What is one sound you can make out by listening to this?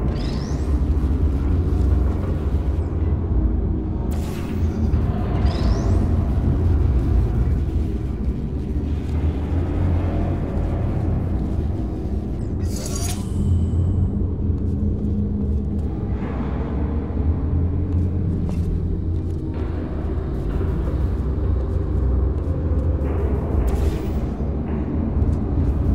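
A low electric hum drones steadily.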